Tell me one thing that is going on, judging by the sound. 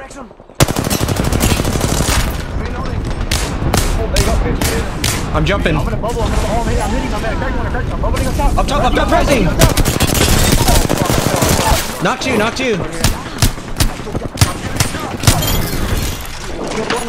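Automatic rifles fire in rapid bursts in a video game.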